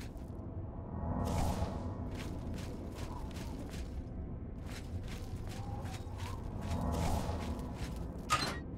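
A magic spell crackles and whooshes as it is cast.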